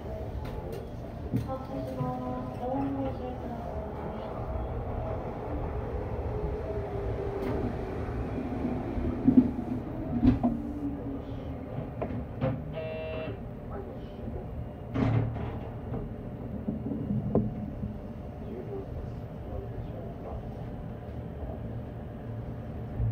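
A train rumbles steadily as it rolls slowly along the track.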